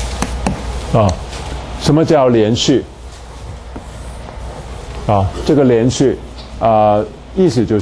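A man speaks calmly, lecturing close to a microphone.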